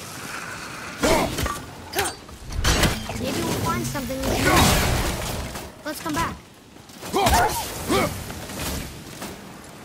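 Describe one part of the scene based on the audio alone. A man speaks in a deep, gruff voice.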